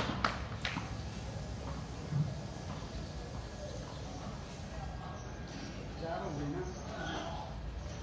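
Footsteps slap on stone paving close by.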